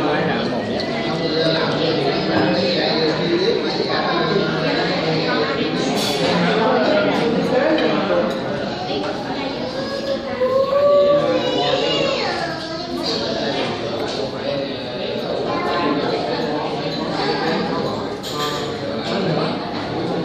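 Many voices chatter in the background of a busy room.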